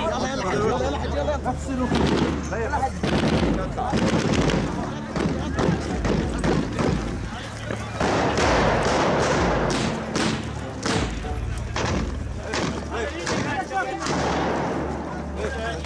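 Men talk excitedly nearby.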